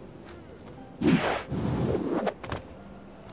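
A stretchy rubbery whoosh sounds as a grabbing arm shoots out.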